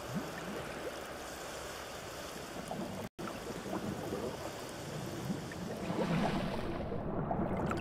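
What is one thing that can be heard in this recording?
Water sloshes and laps steadily.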